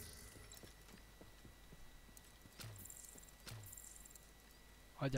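Footsteps fall steadily on a hard floor.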